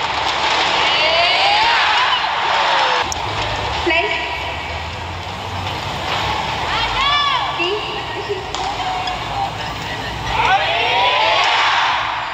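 A racket strikes a shuttlecock with sharp pops in a rally.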